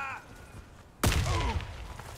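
A loud explosion booms close by and rumbles away.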